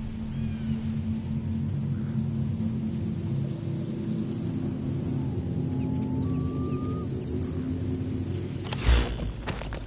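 Horse hooves clop steadily on a dirt road.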